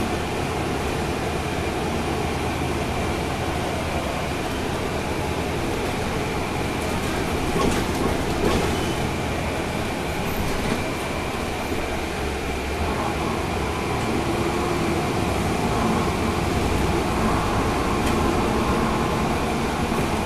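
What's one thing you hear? A vehicle's engine rumbles steadily from inside as it drives along a street.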